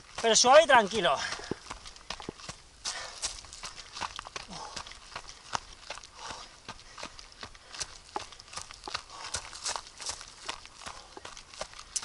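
Footsteps crunch on a dry dirt trail at a running pace.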